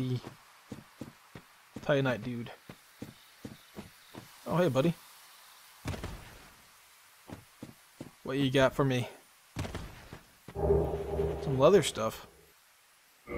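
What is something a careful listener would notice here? Armored footsteps crunch over grass and rock.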